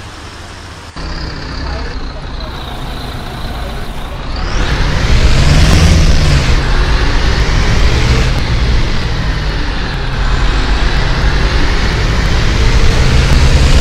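A bus engine hums and rises as the bus pulls away.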